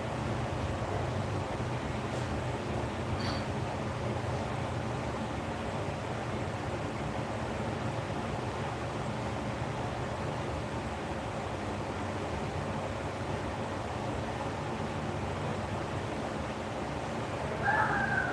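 An electric lamp hums steadily.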